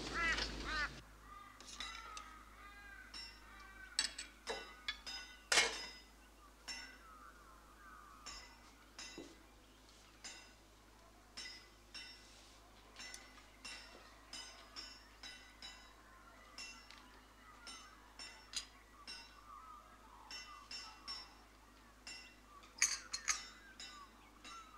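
Cutlery clinks against china plates.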